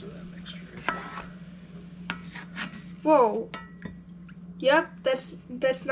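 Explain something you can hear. Sauce pours and splashes into a pan.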